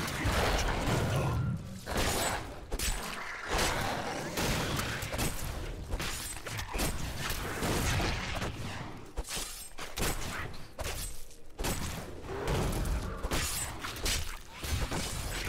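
Magic blasts and fiery bursts crackle during a fight.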